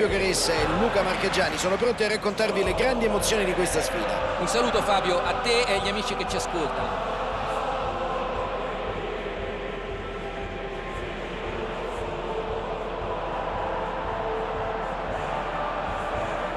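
A large crowd roars in a steady wash of noise.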